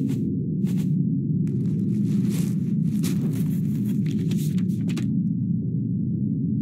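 Water rumbles in a low, steady drone underwater.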